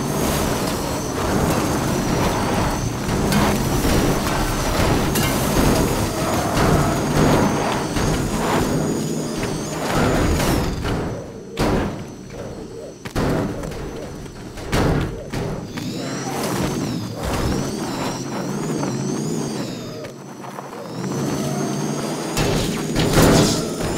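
A car engine revs hard and whines.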